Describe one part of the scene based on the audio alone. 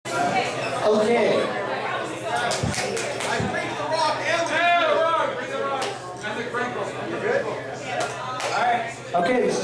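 A live band plays electric guitars and bass.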